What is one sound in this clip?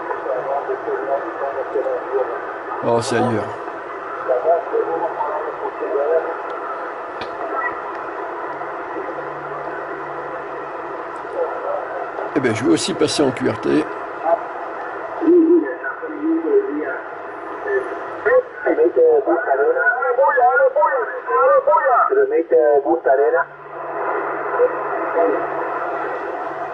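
Static hisses and crackles from a radio receiver.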